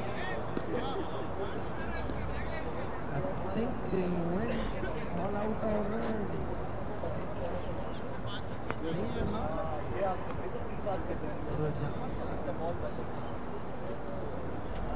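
Wind blows across an open field.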